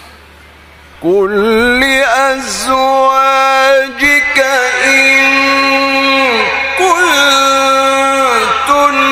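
A man chants in a loud, drawn-out melodic voice through a microphone and loudspeakers.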